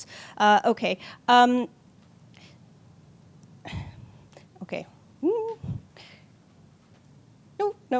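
A young woman speaks haltingly into a microphone.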